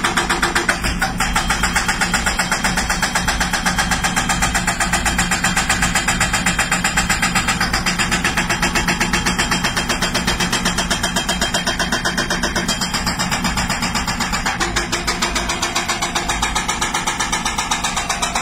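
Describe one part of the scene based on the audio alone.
An excavator's diesel engine runs with a steady, rapid throb close by.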